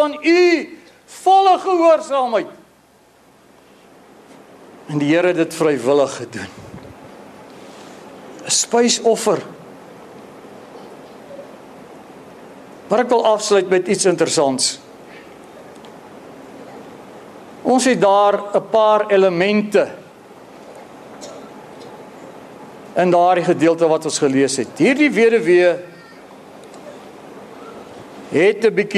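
A middle-aged man speaks with animation through a microphone in bursts, with pauses between phrases, in a reverberant hall.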